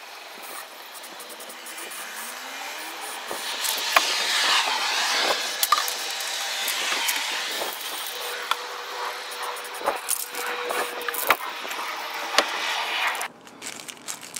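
A spray can hisses in long bursts.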